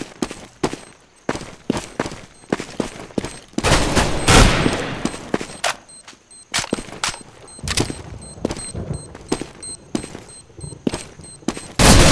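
Footsteps tap quickly and steadily on hard stone.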